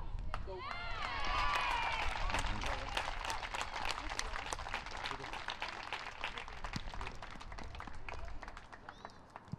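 A small crowd cheers and claps.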